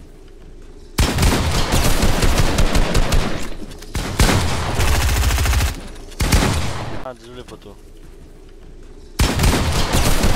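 Rapid gunfire crackles.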